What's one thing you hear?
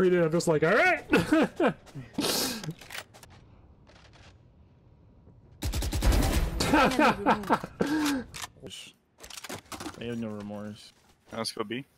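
A young man talks excitedly and laughs close to a microphone.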